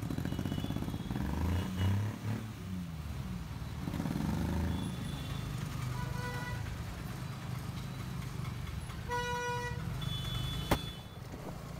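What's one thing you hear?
Motorcycle engines rumble in busy street traffic nearby.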